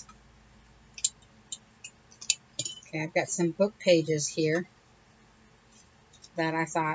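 Paper rustles and taps as cards are handled.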